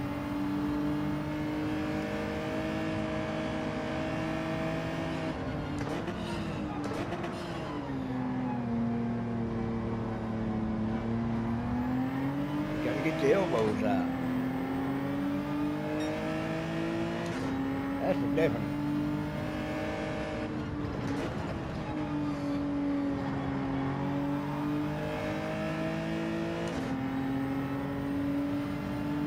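A racing car engine roars steadily, its pitch dropping under braking and climbing as it speeds up through the gears.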